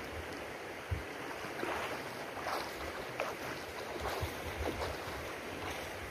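Water splashes as a swimmer kicks and strokes close by.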